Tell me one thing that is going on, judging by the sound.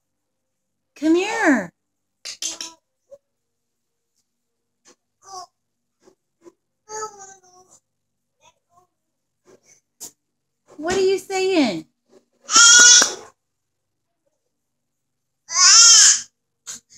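A baby squeals and babbles loudly nearby.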